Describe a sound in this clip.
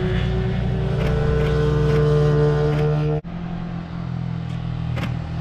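A motorcycle engine hums steadily, then drops in pitch as the gears change.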